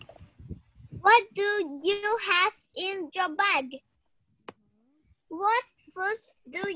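A young girl speaks over an online call.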